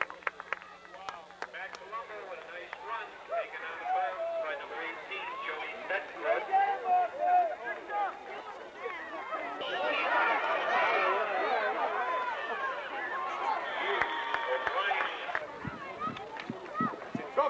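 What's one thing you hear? A crowd of adults and children chatters and shouts nearby outdoors.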